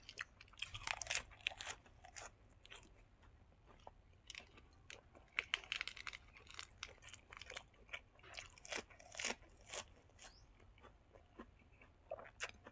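A young man chews food loudly with wet smacking sounds.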